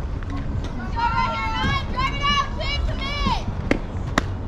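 Young girls shout and cheer loudly in high voices.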